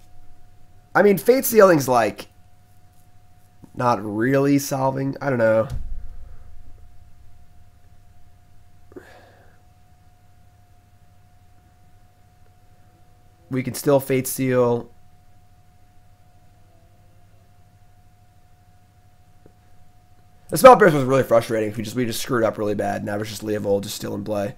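A young man talks calmly into a close microphone, in bursts with pauses.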